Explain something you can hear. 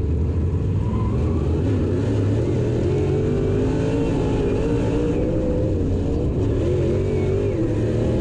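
A race car engine revs up and roars as the car speeds up.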